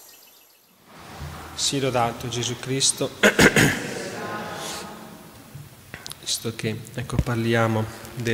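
A man speaks calmly into a microphone in a reverberant hall.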